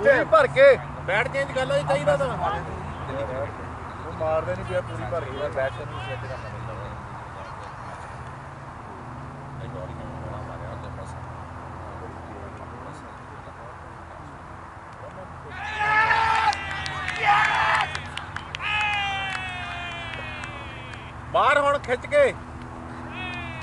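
Men shout and call out loudly across an open field.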